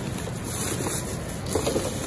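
A thin plastic produce bag crinkles.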